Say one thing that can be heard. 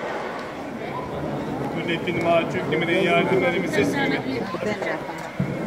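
Many people's voices grow louder and closer in a packed crowd.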